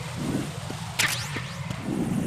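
A short electronic chime sounds once.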